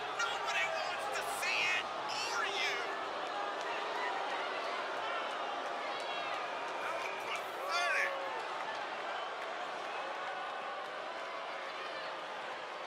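A large crowd cheers and whistles in a big echoing arena.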